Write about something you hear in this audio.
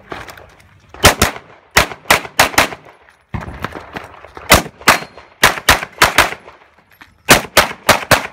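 A pistol fires rapid, sharp shots outdoors.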